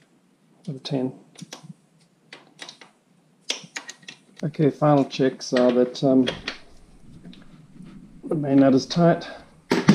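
A ratchet wrench clicks as it turns.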